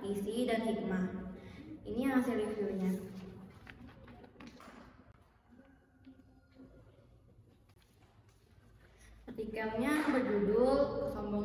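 A young girl reads aloud steadily, close to the microphone.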